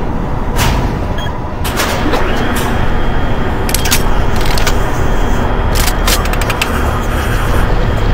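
A lift rumbles and clanks as it moves.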